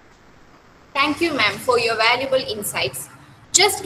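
A young woman speaks over an online call.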